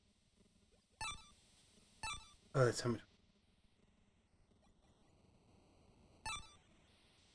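Short electronic blips sound as a menu cursor moves.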